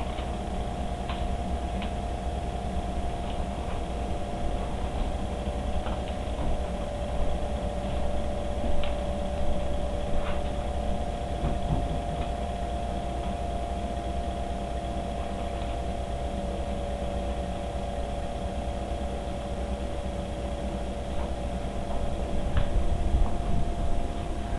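A small dog's paws patter and scrabble on a wooden floor.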